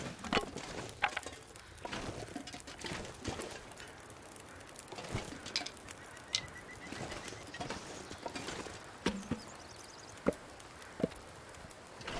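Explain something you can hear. Wooden pieces clatter as they are picked up.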